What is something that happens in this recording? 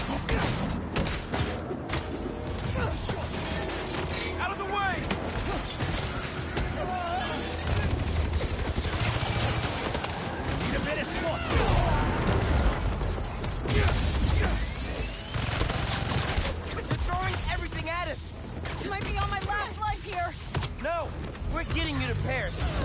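Blows and impacts crack and thud during a fight.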